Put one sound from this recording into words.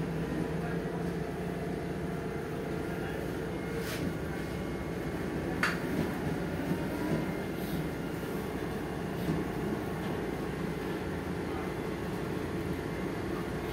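A bus engine hums steadily while the bus drives along.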